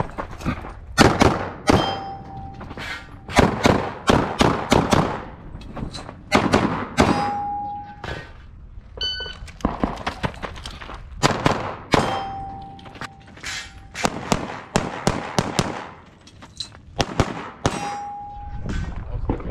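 A pistol fires rapid shots outdoors.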